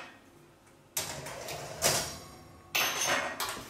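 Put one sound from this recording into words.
An oven rack slides out with a metallic scrape.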